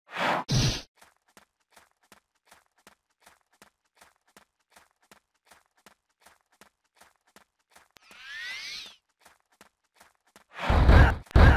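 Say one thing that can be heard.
Footsteps patter quickly and evenly.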